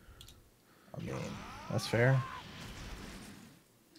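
A magical whoosh and chime ring out as a card is revealed.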